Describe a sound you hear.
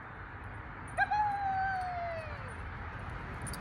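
A woman gives a long whistle that falls in pitch.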